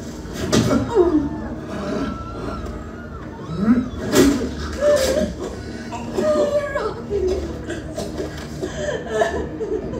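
A woman sobs and cries out in distress.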